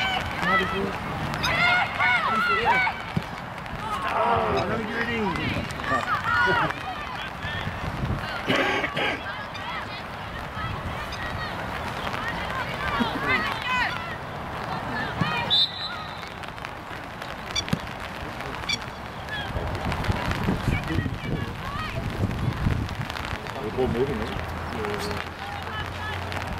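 Players shout to each other across an open field.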